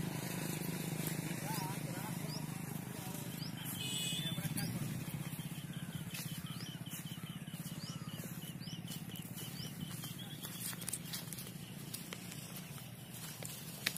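Footsteps crunch on dry ground.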